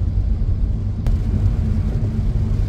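A windshield wiper swipes across the glass.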